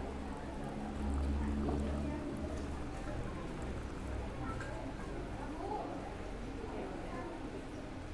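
Tea pours from a kettle into a glass with a steady trickle.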